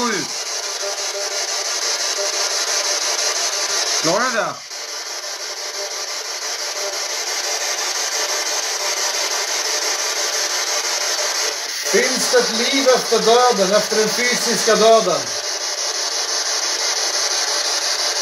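A device hisses with steady static.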